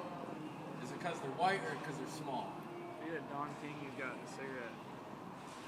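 A young man talks casually near the microphone.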